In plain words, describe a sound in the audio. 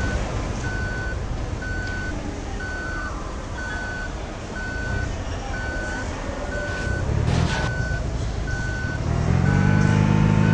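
A bus engine rumbles low and steadily.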